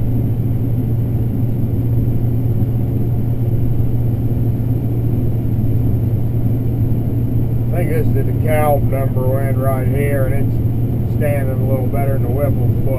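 A combine harvester's engine drones while harvesting corn, heard from inside the cab.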